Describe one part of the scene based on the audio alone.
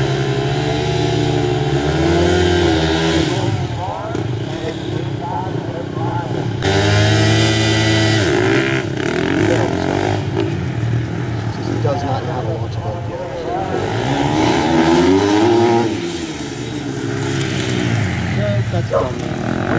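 Motorcycle engines rev loudly, rising and falling in pitch.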